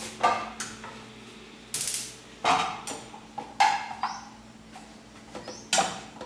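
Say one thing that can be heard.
A metal pan clatters on a gas stove.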